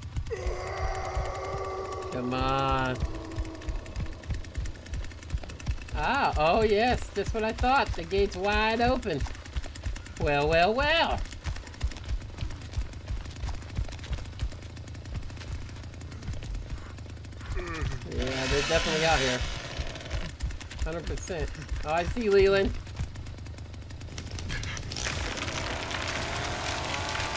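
A chainsaw engine idles with a low, rapid putter.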